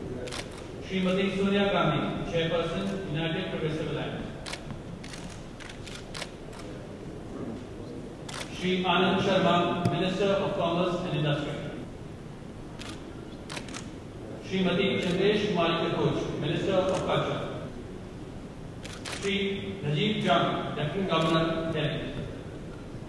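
A man reads out announcements through a loudspeaker in a large echoing hall.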